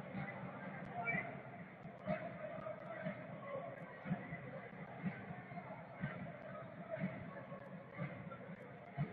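A stadium crowd chants steadily in a large open space.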